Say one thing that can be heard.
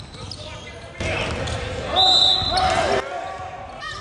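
Spectators cheer and shout in a large echoing gym.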